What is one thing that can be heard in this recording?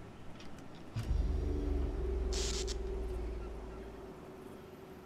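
A ship's horn blows with a deep, loud blast.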